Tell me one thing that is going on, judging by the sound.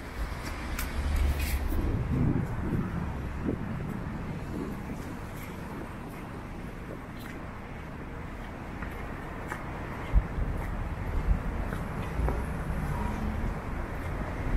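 Traffic hums low in the distance outdoors.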